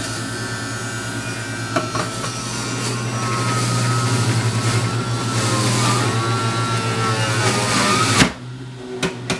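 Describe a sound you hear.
A juicer motor whirs loudly as fruit is pushed through it.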